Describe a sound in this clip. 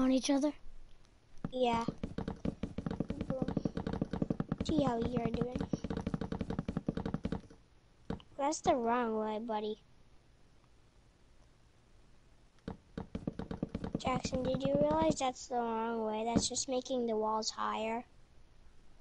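A young person talks with animation, close to a microphone.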